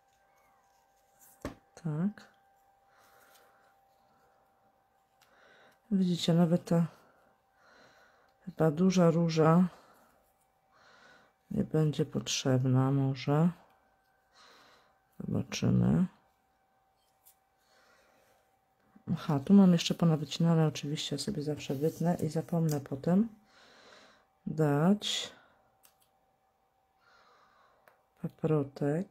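Paper pieces rustle and tap softly as they are handled.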